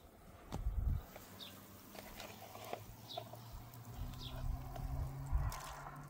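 A pot of broth simmers and bubbles over a fire.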